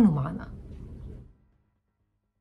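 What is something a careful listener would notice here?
A woman speaks calmly and close to a microphone, then falls silent.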